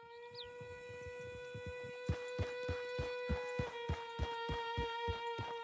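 A horse gallops with rhythmic hoofbeats.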